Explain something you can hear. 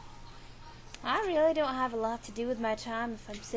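A girl speaks close to a microphone with animation.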